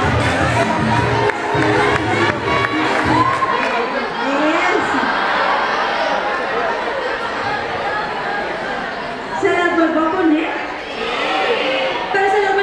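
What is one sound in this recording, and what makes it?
Young women's voices call out and laugh over the crowd.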